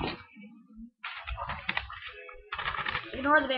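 Paper rustles close by as it is handled.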